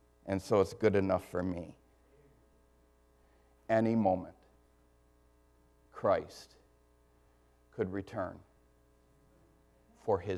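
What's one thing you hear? A middle-aged man speaks slowly and deliberately through a microphone, with pauses between phrases.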